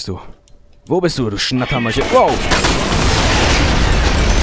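A heavy gun fires in a rapid, loud burst.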